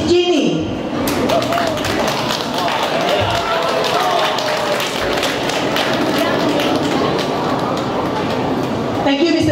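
Feet shuffle and tap on a hard floor as people dance.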